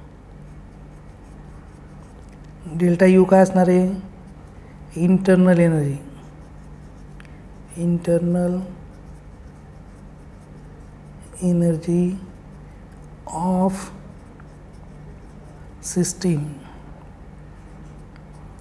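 A marker pen squeaks and scratches across paper.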